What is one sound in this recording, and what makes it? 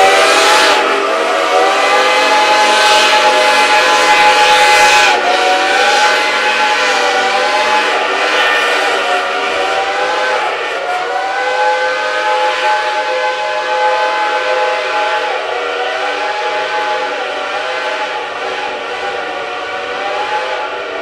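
Steam locomotives chuff hard as they labour uphill.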